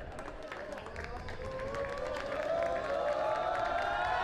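A group of young men cheers and chants loudly, rising in pitch.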